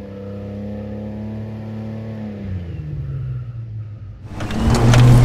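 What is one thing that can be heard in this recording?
An off-road vehicle's engine revs and then drops in pitch nearby.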